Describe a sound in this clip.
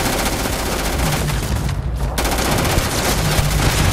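A grenade launcher fires with a heavy thump.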